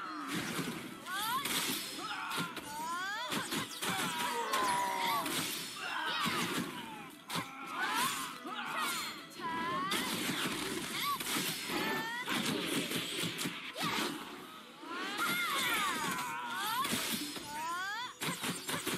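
Magic spells whoosh and blast again and again in combat.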